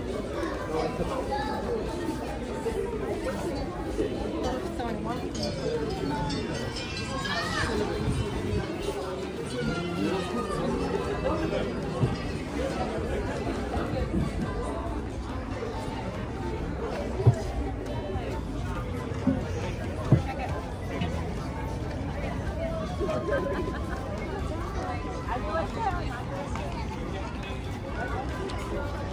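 A crowd of people chatters nearby, outdoors.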